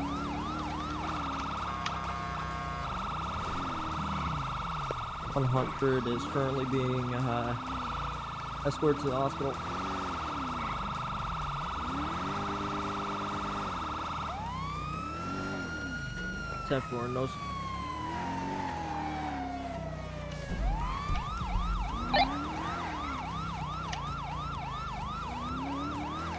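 A police siren wails, yelps and holds a steady tone.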